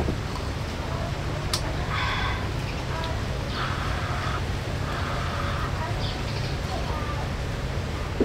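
A woman sips tea from a glass.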